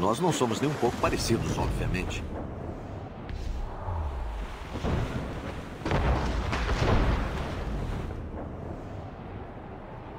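Waves rush and crash against a ship's hull.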